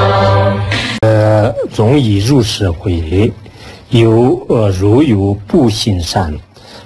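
A man chants steadily into a microphone.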